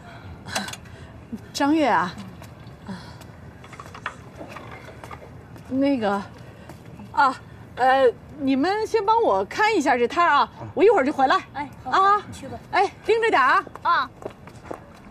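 A young woman speaks brightly and with animation, close by.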